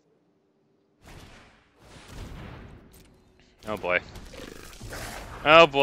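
Digital game sound effects whoosh and chime.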